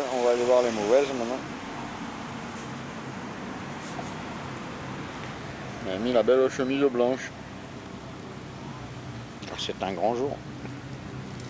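An older man speaks close to the microphone in short bursts with pauses.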